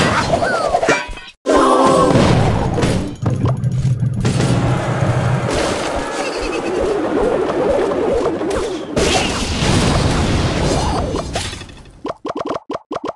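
Game troops clash with blasts and impacts.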